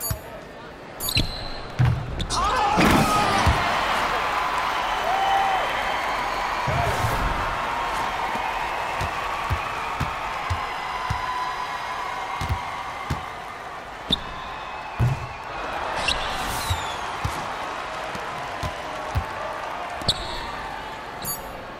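A crowd cheers after a basket.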